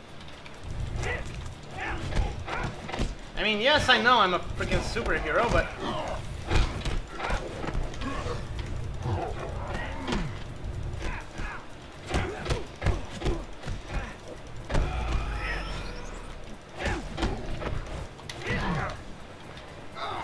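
Punches and kicks thud and smack in a video game fight.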